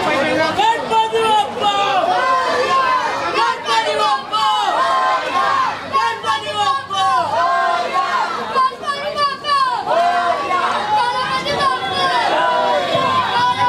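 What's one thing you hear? A crowd of men chant loudly and rhythmically nearby.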